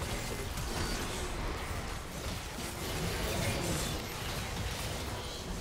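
Video game spells blast and crackle.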